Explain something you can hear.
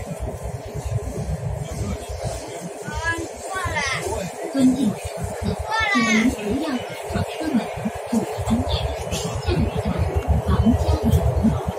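A subway train rumbles and rattles along its track.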